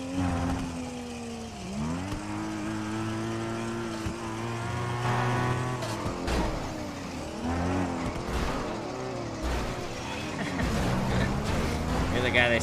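A car engine roars and revs up and down as the car speeds along.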